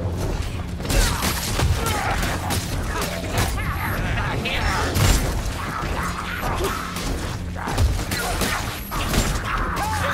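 Blades hack and thud into flesh in a fast melee.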